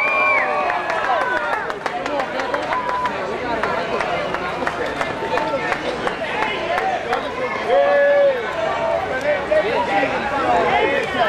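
A large crowd of men and women chatters and calls out loudly outdoors.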